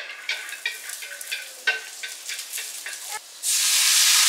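Chopsticks clack against a frying pan.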